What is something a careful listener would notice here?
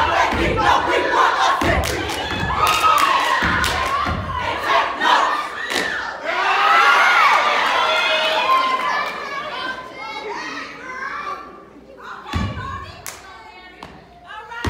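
Young women chant and shout together in rhythm.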